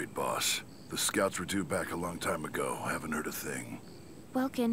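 A gruff man speaks grimly.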